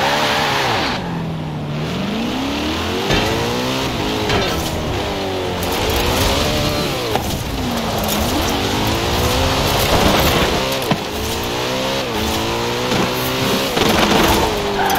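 A car engine roars loudly, revving up and down through the gears.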